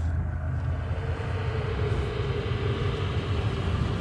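Steam hisses from vents.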